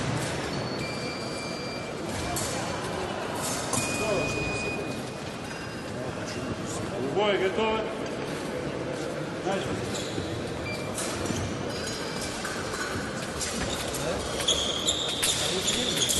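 Men and women chatter at a distance in a large echoing hall.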